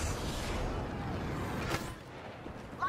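A jet pack roars with a rushing blast.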